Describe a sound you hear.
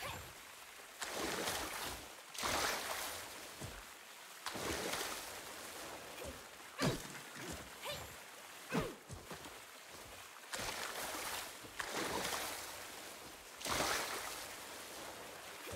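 Water rushes loudly in repeated bursts.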